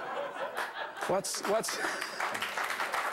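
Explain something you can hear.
A woman laughs brightly at close range.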